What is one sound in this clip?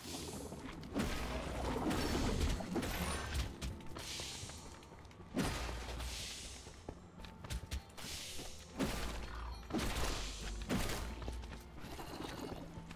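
Game combat effects crash and burst in quick flurries.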